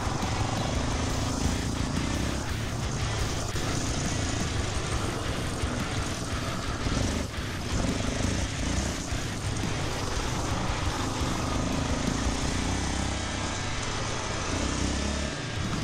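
A quad bike engine roars and revs steadily up close.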